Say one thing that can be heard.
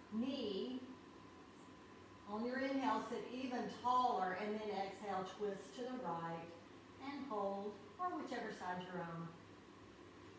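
A woman speaks calmly and softly nearby.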